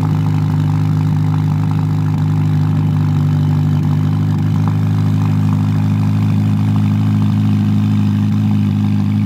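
A sports car's engine idles with a deep, steady rumble close by.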